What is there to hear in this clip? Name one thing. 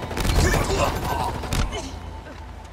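Gunfire bursts loudly in quick shots.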